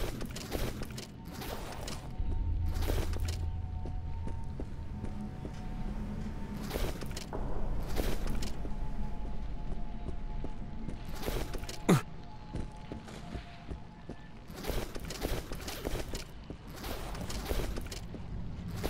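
Bags and luggage rustle and thump as they are rummaged through.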